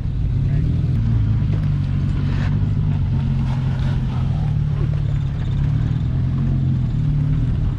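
A truck engine rumbles low and steady as it crawls over rocks.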